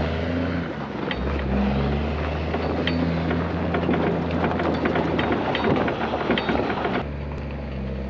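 Steel tracks clatter and crunch over gravel.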